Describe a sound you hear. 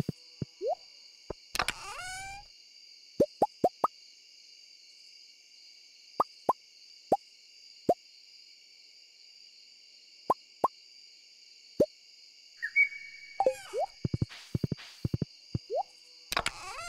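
Short game blips pop as items are moved around.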